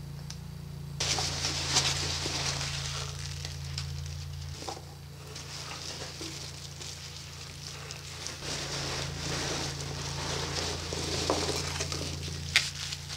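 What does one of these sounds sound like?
Packing peanuts rustle and squeak as hands dig through them.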